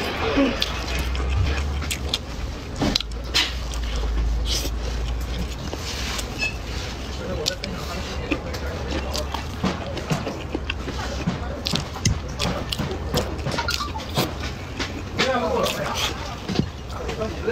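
A young woman chews and slurps soft food close to the microphone.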